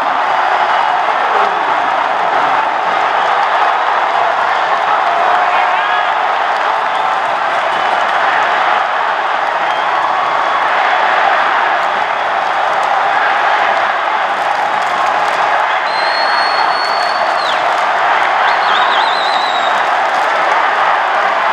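A large stadium crowd roars and cheers loudly throughout.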